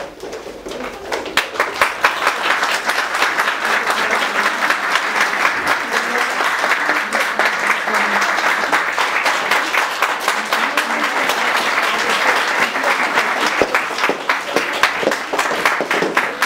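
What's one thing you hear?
A crowd claps steadily in rhythm.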